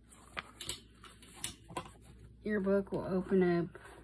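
A paper page flips over.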